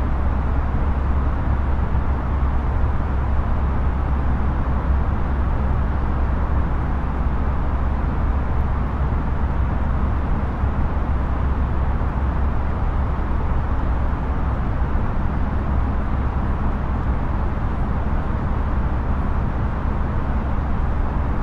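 A jet airliner's engines drone steadily, heard from inside the cockpit.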